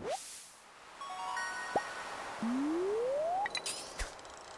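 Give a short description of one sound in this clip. A short bright chime plays as a fish is landed.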